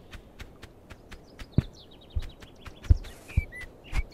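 A heavy sack thumps onto the ground.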